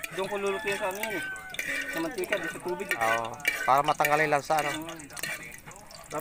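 A metal spoon scrapes against a pan.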